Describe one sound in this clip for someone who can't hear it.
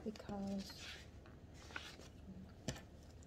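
Paper pages rustle as they are flipped.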